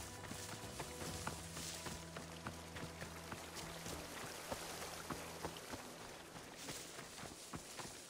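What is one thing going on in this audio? Footsteps patter quickly through grass and brush.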